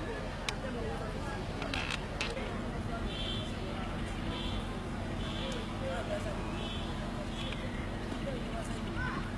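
A crowd of people chatter at a distance outdoors.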